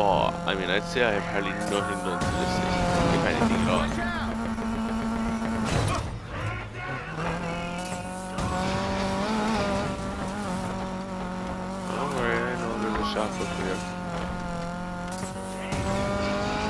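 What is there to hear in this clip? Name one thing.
A car engine roars steadily at high revs, dropping in pitch as the car slows and then climbing again.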